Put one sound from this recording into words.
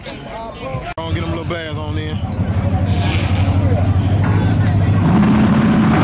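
A race car engine idles with a loud, heavy rumble.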